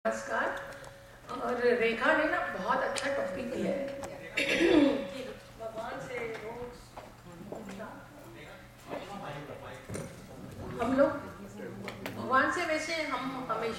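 A middle-aged woman speaks calmly into a microphone, heard through a loudspeaker in an echoing room.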